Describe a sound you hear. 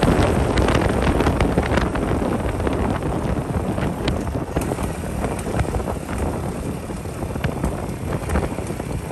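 Tyres roll and crackle over a rough road.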